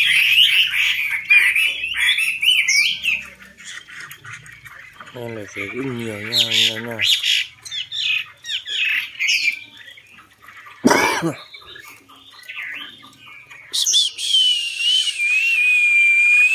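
Many caged birds chirp and twitter close by.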